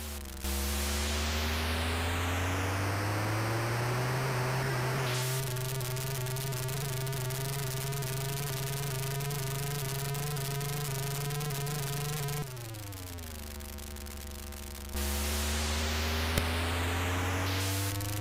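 Tyres screech with a harsh hiss as a car slides sideways.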